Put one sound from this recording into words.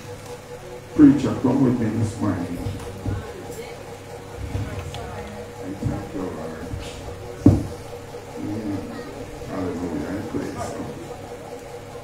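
An elderly man speaks into a microphone over loudspeakers in an echoing hall.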